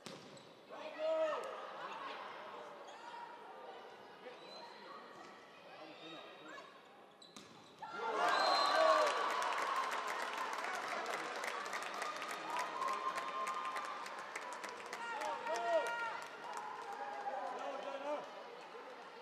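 Young women shout and cheer excitedly.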